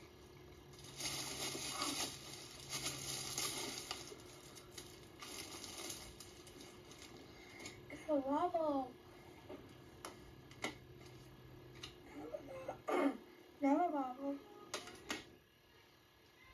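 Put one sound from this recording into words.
Crinkly tinsel and wrapping rustle as a young girl digs through it.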